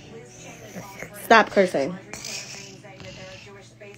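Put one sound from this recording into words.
A young child laughs loudly up close.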